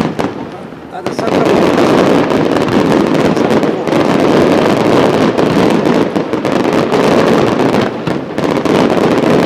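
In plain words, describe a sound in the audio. Fireworks crackle rapidly and continuously.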